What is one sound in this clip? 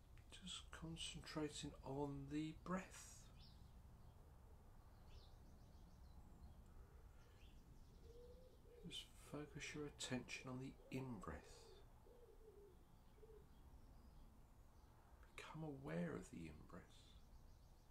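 A middle-aged man speaks calmly and slowly, close by, with long pauses.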